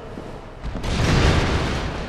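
A sword clangs against a hard hide.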